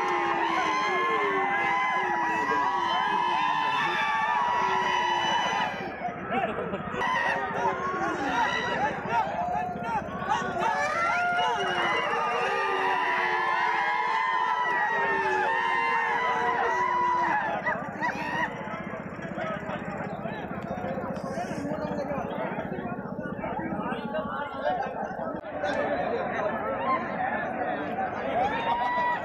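A large crowd of men chants and cheers loudly outdoors.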